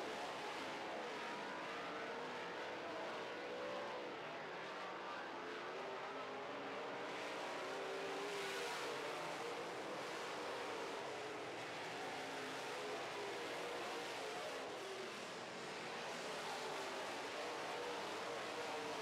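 Race car engines roar and whine.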